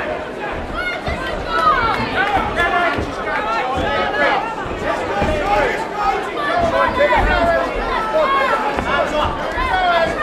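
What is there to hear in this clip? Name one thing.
Boxing gloves thud against a body and head.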